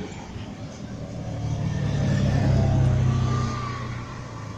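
A small off-road vehicle's engine drones as it drives past close by.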